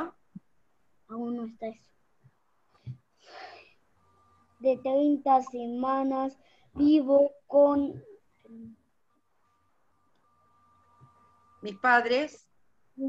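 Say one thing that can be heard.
Children speak in turn through an online call.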